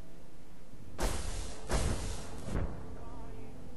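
A sudden loud rushing whoosh bursts out and fades.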